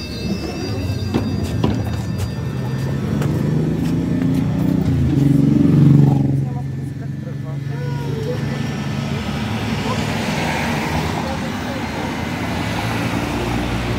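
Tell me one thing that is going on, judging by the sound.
A bus engine idles with a low steady rumble nearby.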